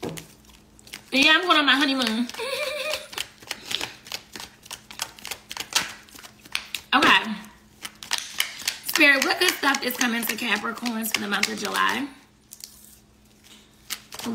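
Paper wrappers crinkle as a young woman handles them.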